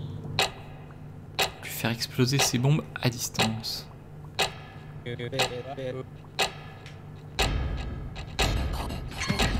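A game timer ticks sharply once every second.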